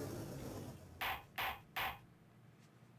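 A wooden gavel bangs three times.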